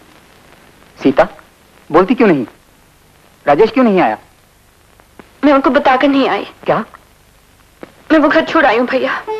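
A woman answers a man in a tense voice.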